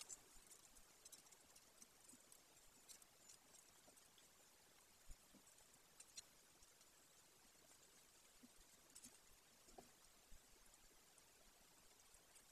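An eagle tears at prey with soft ripping sounds.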